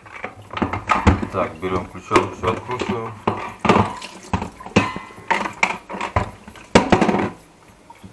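Plastic parts knock and clatter as a water filter is taken apart.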